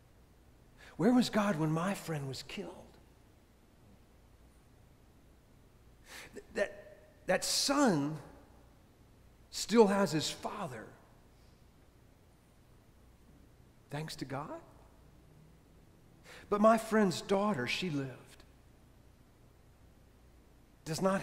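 A man speaks calmly into a microphone in short phrases, with pauses, in a reverberant hall.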